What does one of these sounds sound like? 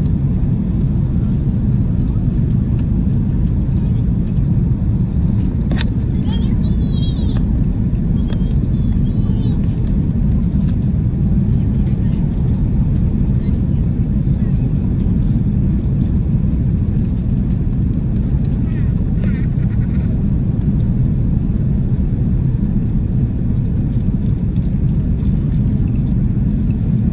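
A jet engine roars steadily in a plane cabin.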